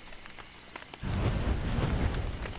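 A fire flares up and crackles.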